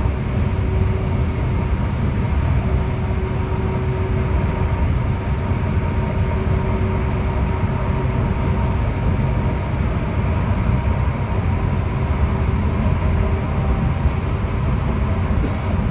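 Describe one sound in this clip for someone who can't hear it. Tyres roar on the road, echoing inside a tunnel.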